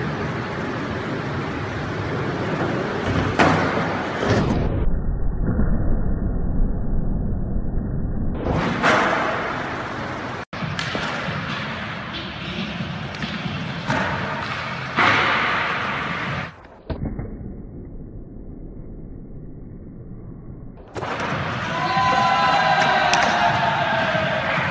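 Skateboard wheels roll on concrete in a large echoing hall.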